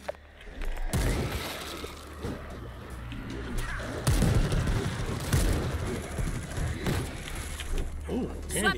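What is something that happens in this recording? Heavy blows thud into bodies in quick fights.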